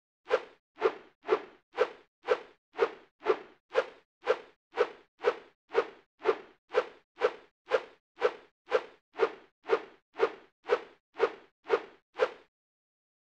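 Short bright game chimes ring out in a quick, steady series.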